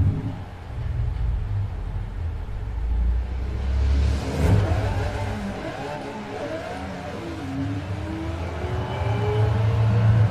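A race car engine roars and revs as the car speeds up.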